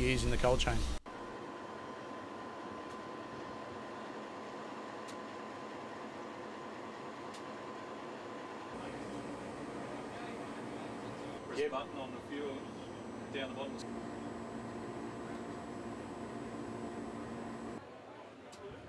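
A locomotive engine idles with a steady low hum.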